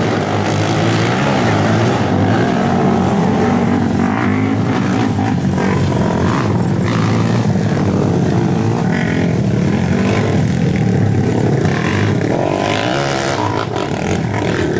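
Quad bike engines roar and whine loudly as they race on dirt.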